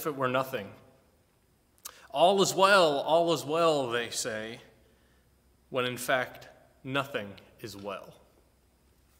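A middle-aged man speaks calmly and expressively, close by.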